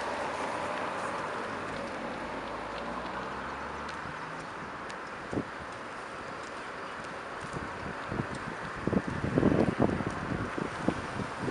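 Traffic hums steadily on a street outdoors.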